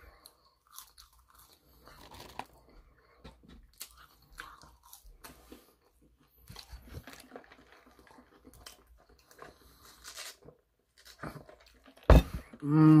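A young man chews food with soft smacking sounds.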